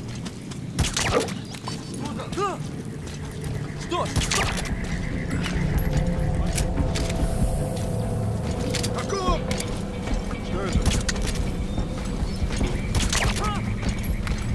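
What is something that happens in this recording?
Gunshots fire in sharp, echoing bursts.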